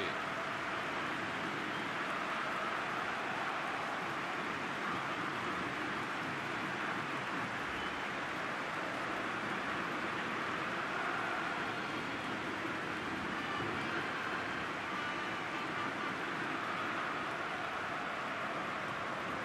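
A large stadium crowd cheers and roars steadily, echoing in a huge open space.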